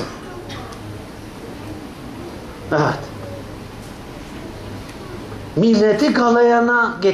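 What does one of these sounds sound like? An elderly man speaks nearby, becoming loud and drawn-out, almost chanting.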